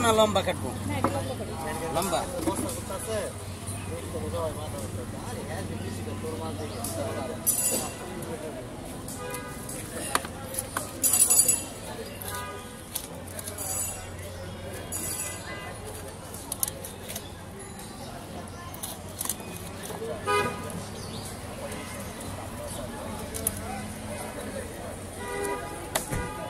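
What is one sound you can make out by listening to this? A fixed curved blade slices through a large raw carp with wet scraping.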